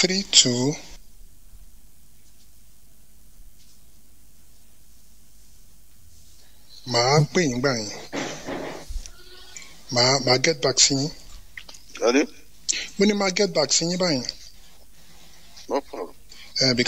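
A man speaks calmly and close into a microphone, with pauses.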